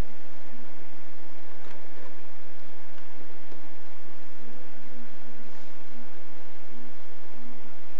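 A box fan whirs steadily.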